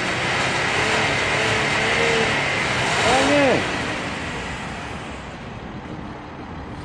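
A car engine rumbles steadily through its exhaust, revs briefly and then quietens.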